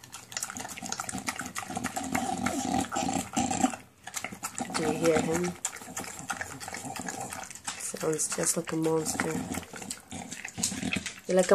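A dog eats wet food noisily from a metal bowl.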